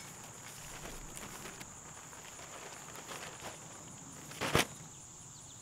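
Cardboard and packing paper rustle and crackle as a man unpacks a box.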